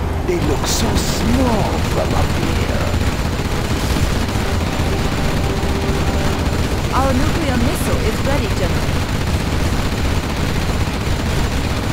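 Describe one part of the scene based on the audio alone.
Helicopter rotors throb steadily.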